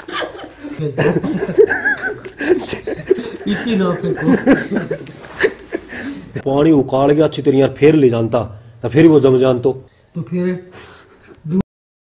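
A young man laughs close to the microphone.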